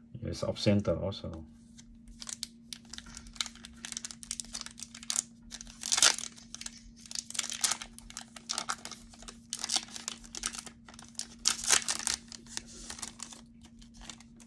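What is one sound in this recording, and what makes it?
A foil card pack crinkles and rustles as it is torn open.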